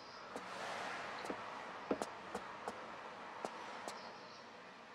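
Footsteps thump quickly on a wooden floor.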